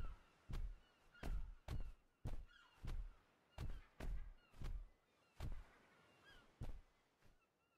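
Heavy footsteps thud at a slow, steady pace as a large creature walks past.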